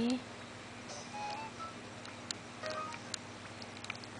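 A handheld game console gives short electronic beeps.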